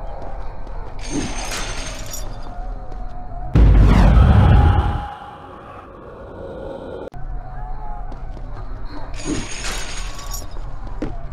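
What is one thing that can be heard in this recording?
A low rushing whoosh sweeps by.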